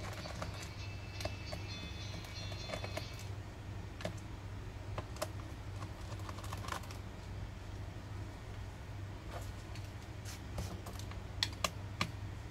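A screwdriver clicks against screws in a plastic case.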